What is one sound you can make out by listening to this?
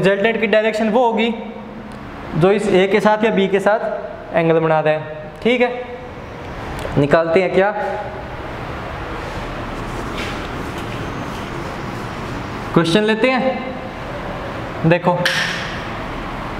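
A young man explains calmly and clearly, close by.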